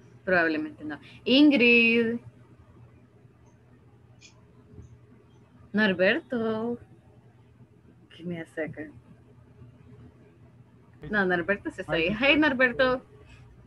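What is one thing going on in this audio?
A woman speaks calmly through an online call, in short bursts with pauses.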